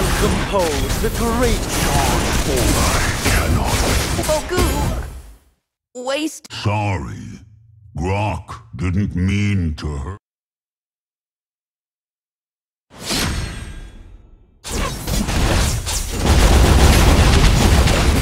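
Game battle effects clash, whoosh and explode.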